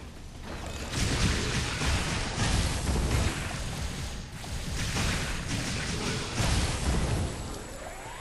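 An electric energy beam crackles and hums loudly.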